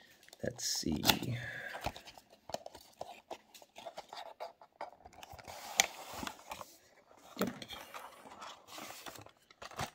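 A cardboard box slides and scrapes against plastic.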